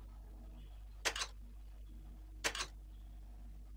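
A short game sound effect plays twice.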